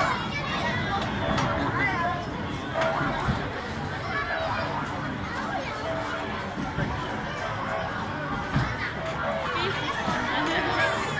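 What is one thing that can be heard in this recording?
A crowd of children and adults chatters and shouts outdoors.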